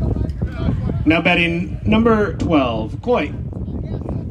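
A man shouts from across an open field.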